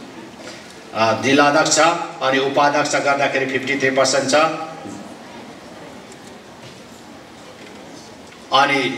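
A middle-aged man speaks steadily into a microphone over a loudspeaker, with pauses.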